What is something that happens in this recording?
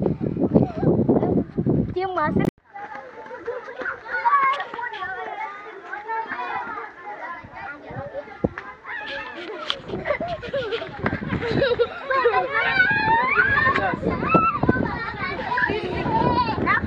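Children chatter and shout excitedly close by.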